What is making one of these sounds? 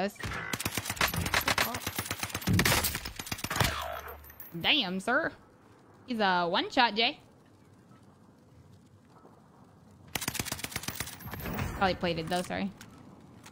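Rifle shots crack sharply from a game.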